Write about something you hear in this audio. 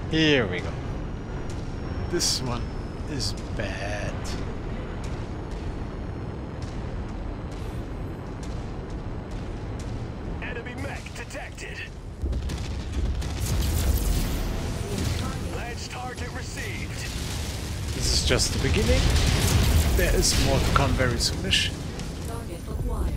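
A giant robot's engine hums low and steady.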